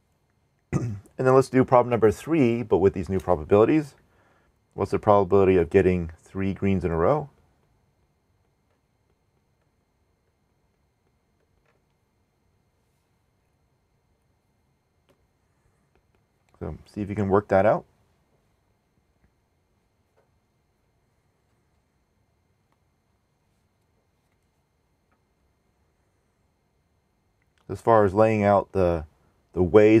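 A man speaks calmly into a close microphone, in bursts with long pauses.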